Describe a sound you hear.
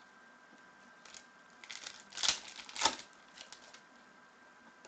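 Trading cards rustle and slide as hands shuffle through them.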